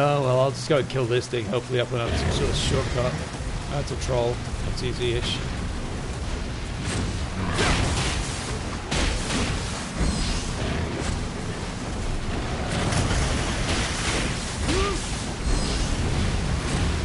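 Heavy rain falls steadily.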